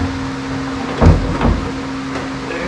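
A plastic part knocks against a metal tank.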